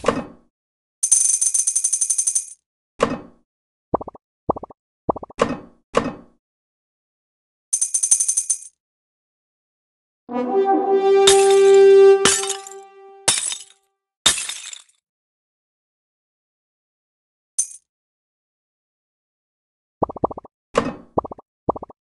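Short bright chimes ring out as balls are picked up.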